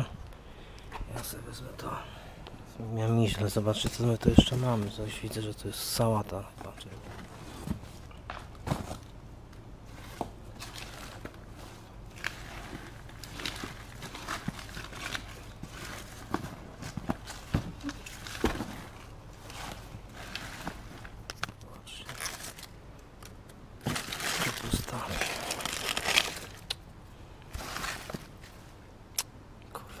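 Vegetables are handled and shuffled about with soft knocks.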